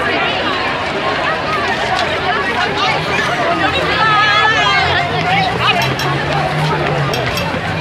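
A large crowd of young women chatters and calls out loudly outdoors.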